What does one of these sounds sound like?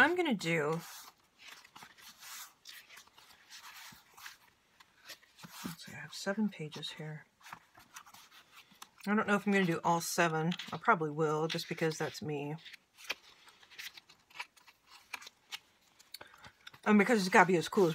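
Paper pages rustle and flip as a book is leafed through.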